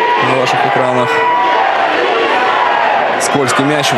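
A crowd murmurs and calls out in the open air.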